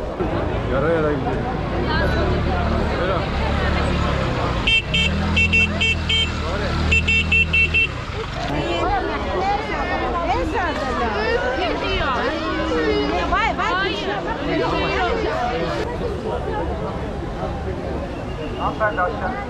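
A large crowd of people chatters all around outdoors.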